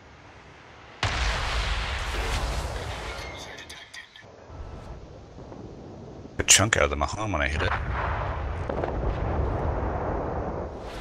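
Heavy ship guns fire with loud, deep booms.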